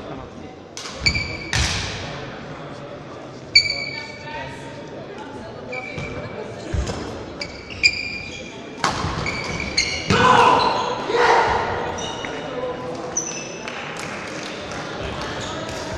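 Shoes squeak on a gym floor.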